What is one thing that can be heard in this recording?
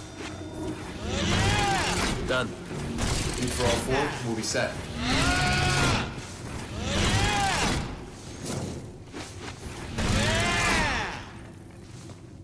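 Large spinning blades whir, rising and falling in pitch again and again.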